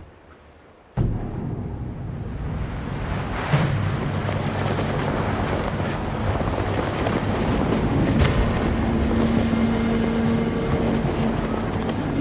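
Cloth banners flap in the wind.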